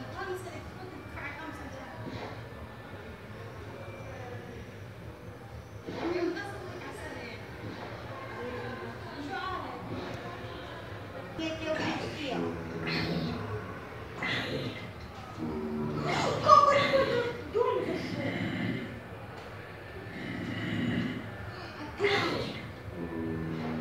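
Video game sounds play from a loudspeaker in a room.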